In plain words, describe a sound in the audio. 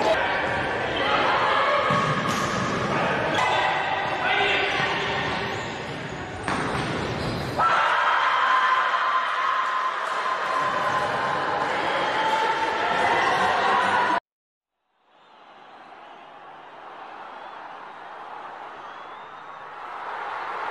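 Shoes squeak on a wooden court in a large echoing hall.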